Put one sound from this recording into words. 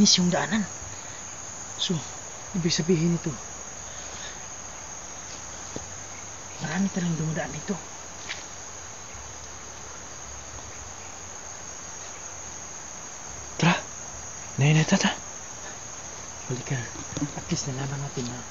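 Footsteps crunch on leaves along a forest path.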